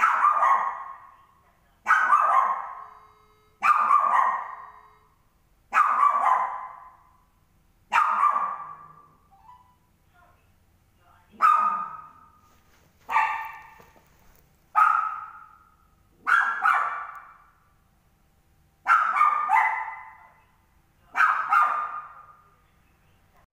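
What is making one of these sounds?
A dog barks loudly over and over.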